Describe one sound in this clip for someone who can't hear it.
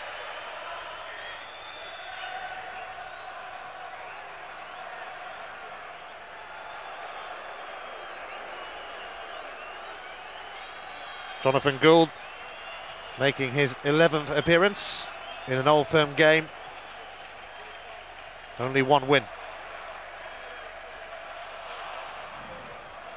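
A large stadium crowd murmurs and chants steadily in the distance.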